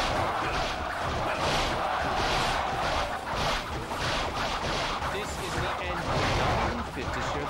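Blades clash and swish repeatedly in a noisy battle.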